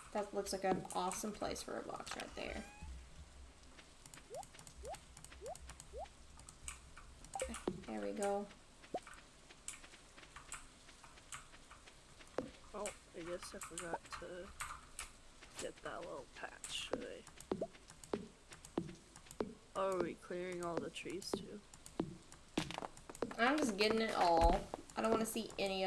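A young woman talks casually into a close microphone.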